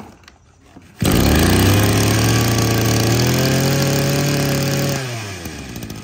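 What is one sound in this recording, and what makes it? A small two-stroke engine roars loudly at high revs.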